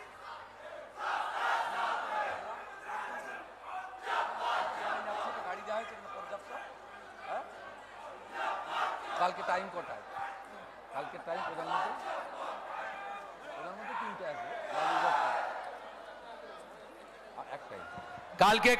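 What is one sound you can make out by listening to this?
A man speaks with animation over a loudspeaker in an open space.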